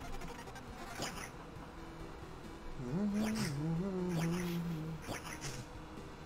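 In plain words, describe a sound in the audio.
Swords clash with sharp metallic hits.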